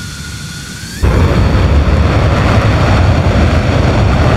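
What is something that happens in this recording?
A jet engine suddenly roars loudly as it powers up.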